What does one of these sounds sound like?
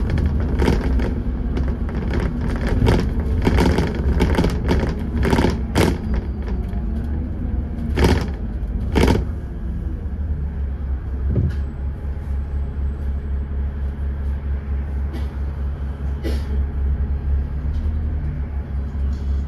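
Cars pass by on a wet road.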